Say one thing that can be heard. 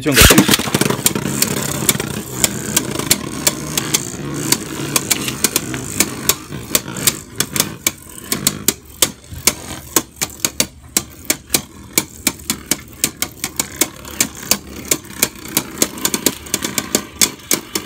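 Spinning tops clash with sharp, rapid clicks.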